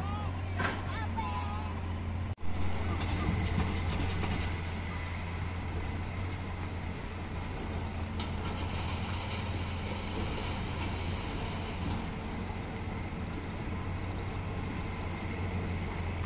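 A heavy truck engine rumbles at a distance.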